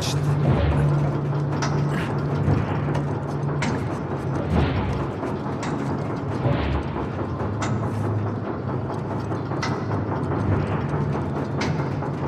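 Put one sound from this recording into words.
Heavy gears turn with a low, steady rumble.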